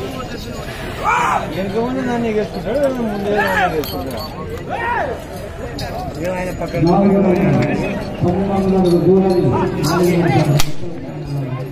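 Men close by call out loudly.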